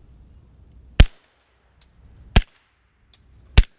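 A suppressed pistol fires in sharp cracks outdoors.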